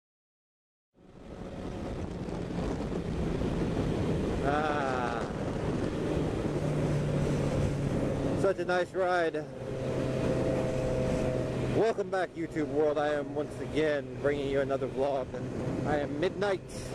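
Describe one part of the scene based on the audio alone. A motorcycle engine roars and revs up and down through the gears.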